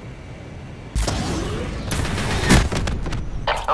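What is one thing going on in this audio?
A missile explodes with a loud, deep boom.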